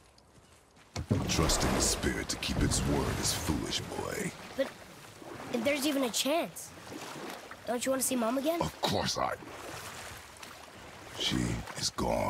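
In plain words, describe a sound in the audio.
Oars splash and churn through water.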